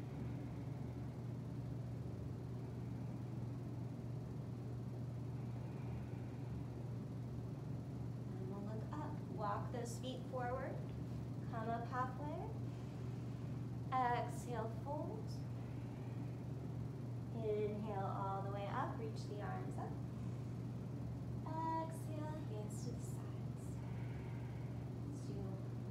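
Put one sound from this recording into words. Electric fans hum steadily.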